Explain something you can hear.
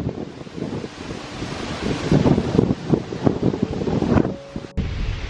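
Wind gusts strongly outdoors.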